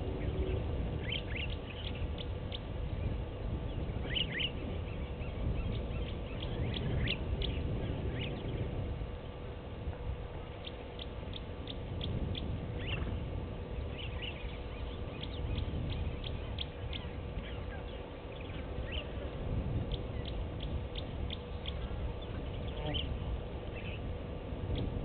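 Wind rumbles steadily across open ground outdoors.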